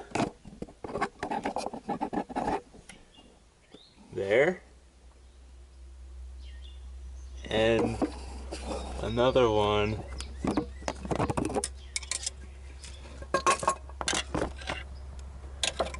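Metal parts click and knock as a hand works among them.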